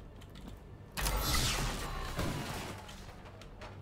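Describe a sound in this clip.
A loud explosion booms and fades with rattling debris.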